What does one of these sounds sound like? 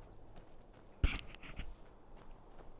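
A young man makes a brief loud exclamation close to a microphone.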